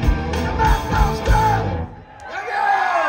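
A rock band plays loudly through a large outdoor sound system.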